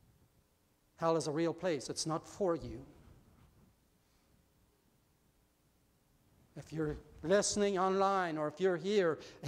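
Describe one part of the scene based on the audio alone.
A middle-aged man speaks calmly through a microphone in a reverberant hall.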